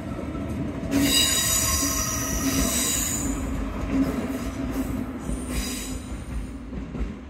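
Train brakes squeal sharply.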